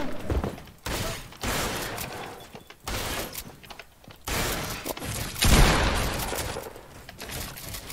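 Building pieces snap into place with sharp clattering bursts.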